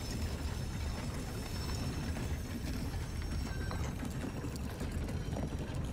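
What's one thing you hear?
A heavy stone door rumbles and grinds as it slowly opens.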